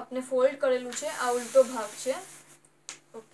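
A sheet of paper rustles as it is slid across cloth.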